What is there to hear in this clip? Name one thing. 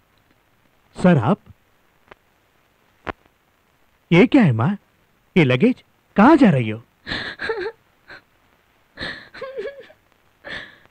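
A man speaks with emotion, close by.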